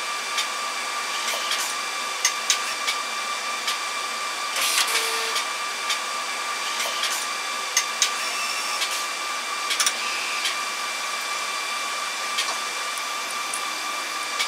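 An automated machine hums steadily.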